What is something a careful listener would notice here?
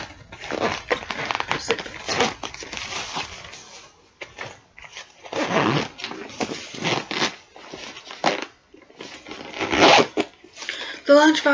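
A zipper rasps open and shut on a backpack.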